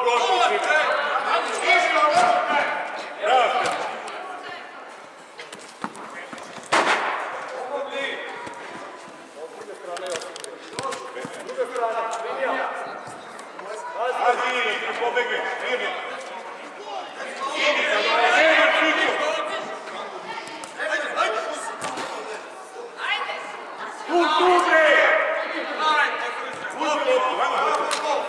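Children shout and call out across the hall.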